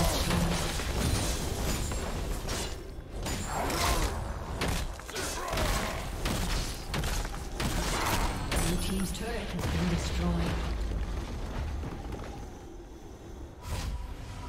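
Video game spells blast and crackle in a busy fight.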